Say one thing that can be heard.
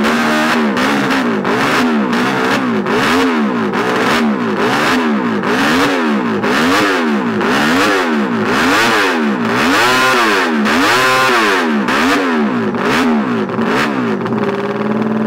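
A racing motorcycle engine revs up and down over and over, loud and close.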